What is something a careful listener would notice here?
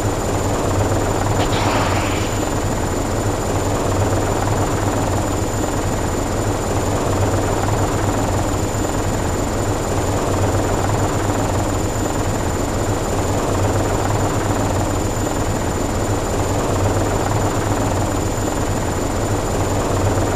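A helicopter engine roars steadily with rotor noise.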